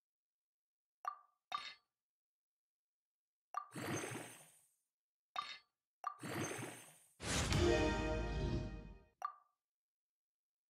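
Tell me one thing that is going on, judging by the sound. Game menu chimes and whooshes sound as an item is enhanced.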